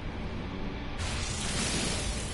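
A mining laser beam hisses and crackles.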